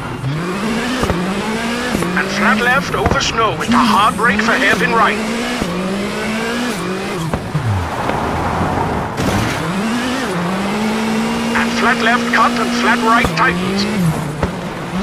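A rally car engine revs hard and drops in pitch with each gear change.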